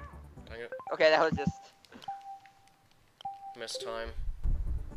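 Short electronic menu chimes and blips sound.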